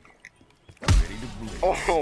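A heavy punch lands with a loud thud.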